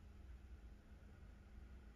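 Beer pours from a bottle into a glass and fizzes.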